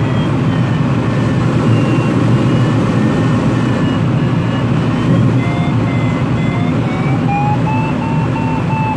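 Air rushes loudly and steadily past a small aircraft's cockpit in flight.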